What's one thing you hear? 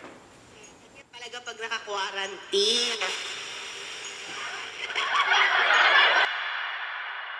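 A small radio speaker crackles with static and warbling, shifting tones.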